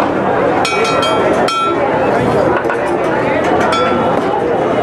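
A metal spatula clinks sharply against metal.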